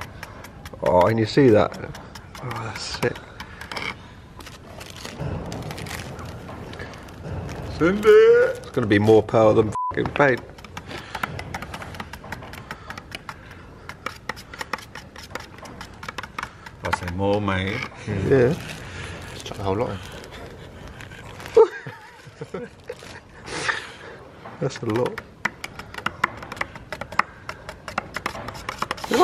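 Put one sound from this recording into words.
A stick stirs thick paint in a metal can and scrapes against its sides.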